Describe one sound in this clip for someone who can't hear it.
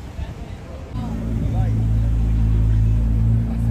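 A sports car engine roars loudly as it pulls away nearby.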